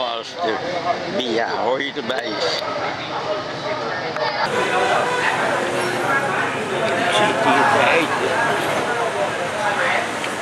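Several men talk at once in a lively outdoor chatter.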